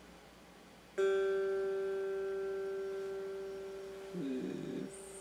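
An electric guitar chord is strummed once and rings out, slowly fading.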